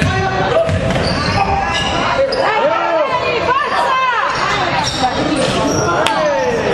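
A crowd of spectators murmurs and calls out.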